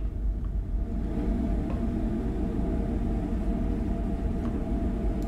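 A machine hums steadily and loudly up close.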